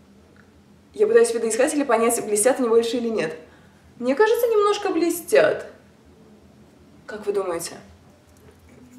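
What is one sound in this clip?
A young woman speaks with animation, close to the microphone.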